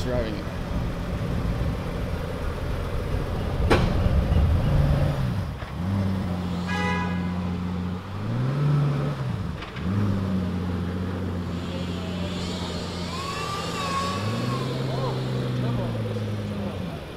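A supercar engine idles with a deep, rumbling burble.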